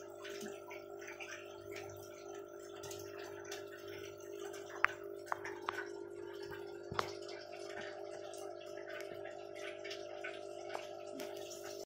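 Air bubbles gurgle and fizz steadily in water.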